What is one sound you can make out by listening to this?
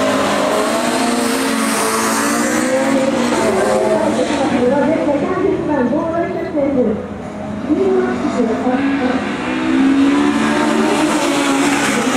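A car engine revs hard and rises and falls in pitch.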